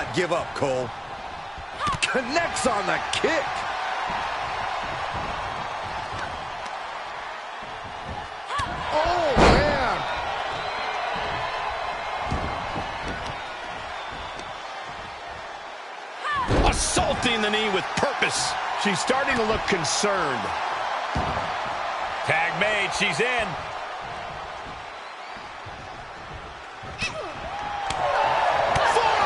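Bodies thud onto a wrestling ring mat.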